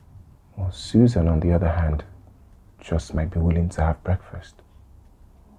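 A man speaks nearby in a low, tense voice.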